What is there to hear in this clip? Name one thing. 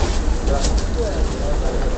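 A paper towel tears off a roll.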